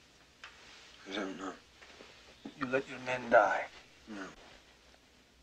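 A young man answers quietly and hesitantly nearby.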